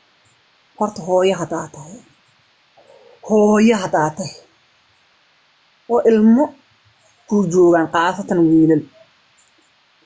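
A young woman speaks animatedly in short bursts, close to a phone microphone.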